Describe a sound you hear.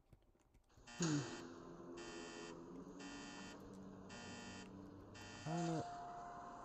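An electronic alarm beeps in quick, even bursts.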